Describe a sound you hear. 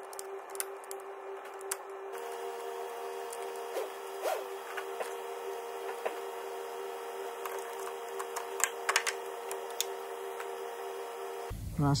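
Hands click and tap on plastic engine parts.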